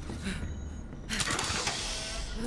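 A crate lid clanks open.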